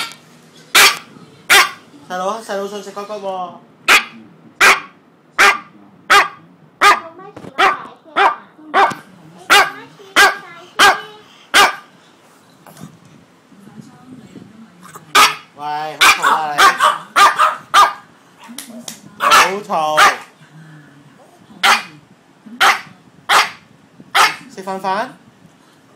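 A dog barks sharply, over and over, close by.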